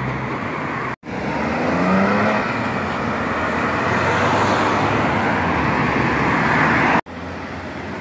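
A car engine revs hard and roars as a car speeds away.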